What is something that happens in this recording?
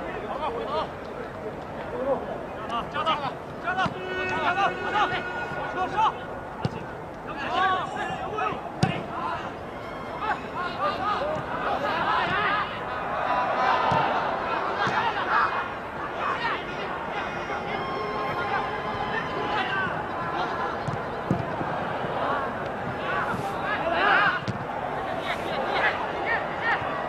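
A crowd murmurs and cheers in a large open stadium.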